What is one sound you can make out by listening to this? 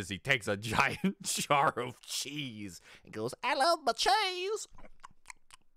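A young man laughs loudly and talks with animation close to a microphone.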